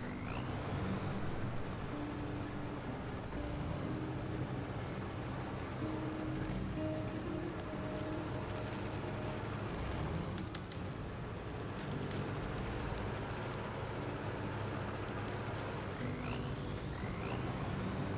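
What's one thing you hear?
Tyres crunch through snow.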